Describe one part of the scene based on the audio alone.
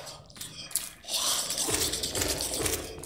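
A sword slashes with a sharp swish.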